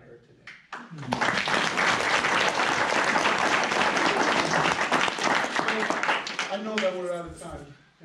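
A crowd claps and cheers loudly, then dies down.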